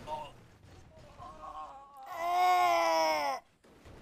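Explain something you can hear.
A car crashes down onto rocks.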